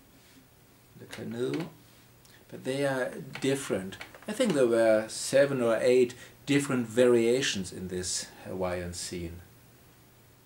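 A man talks close by, calmly.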